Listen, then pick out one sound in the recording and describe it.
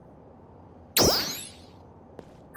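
A game menu plays a bright swooshing chime as a list changes.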